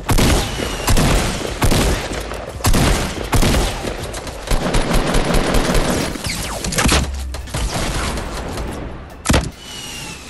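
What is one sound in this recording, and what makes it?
Gunshots boom in quick bursts.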